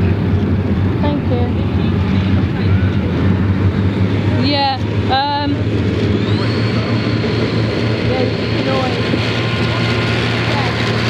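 A tracked vehicle's engine rumbles steadily as it drives over the ground.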